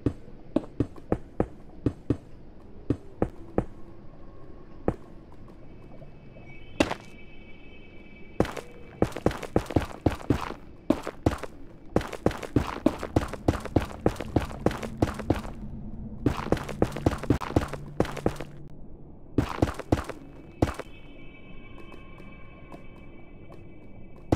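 Blocks are placed with quick, repeated stone thuds.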